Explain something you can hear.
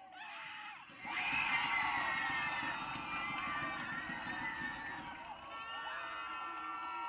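Spectators on the sideline cheer and yell.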